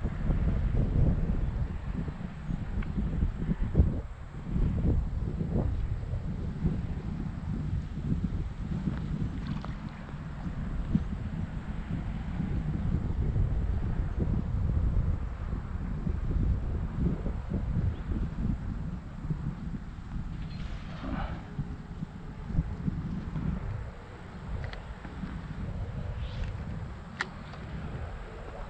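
Wind rumbles across a microphone outdoors.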